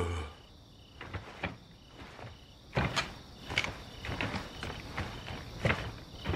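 Footsteps clatter on wooden boards.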